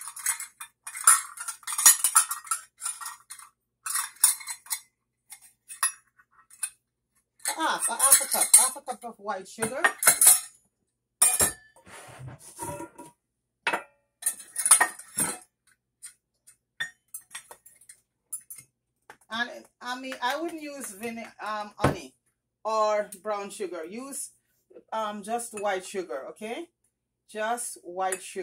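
Metal measuring cups clink and rattle.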